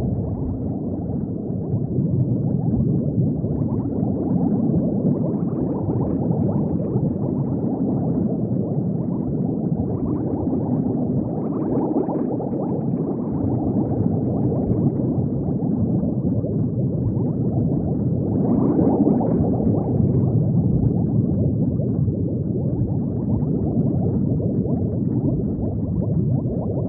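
Bubbles gurgle steadily underwater.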